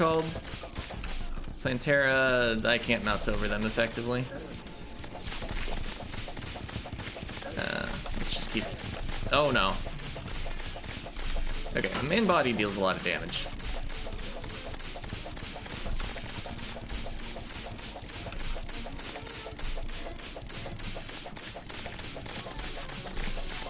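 Rapid electronic zapping shots fire without pause.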